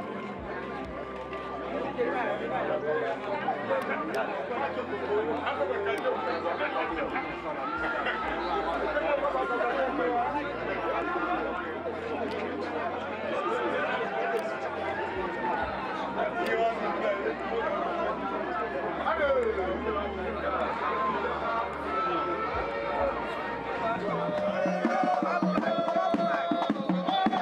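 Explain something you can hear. A crowd of men and women sing together nearby.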